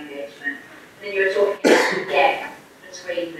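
A man coughs into a microphone.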